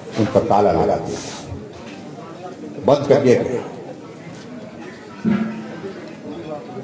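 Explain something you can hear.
An elderly man speaks forcefully into a microphone over a loudspeaker.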